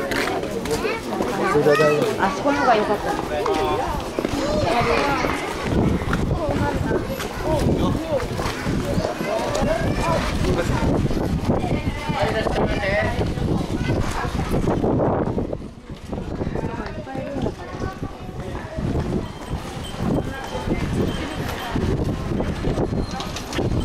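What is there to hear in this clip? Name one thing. A crowd chatters on a busy street outdoors.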